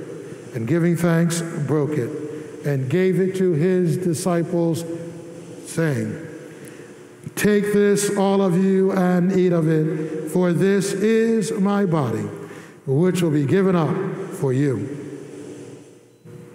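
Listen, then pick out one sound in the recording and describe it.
A man chants in a steady, sung voice through a microphone, echoing in a large hall.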